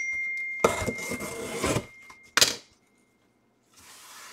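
Plastic wrap crinkles as it is pulled off a cardboard box.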